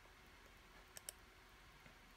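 A computer mouse clicks twice.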